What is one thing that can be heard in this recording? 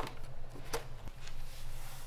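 A wooden dowel is pressed into a hole.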